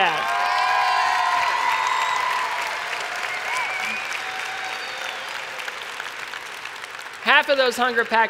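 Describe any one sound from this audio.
A large crowd cheers and applauds in a big echoing hall, then fades.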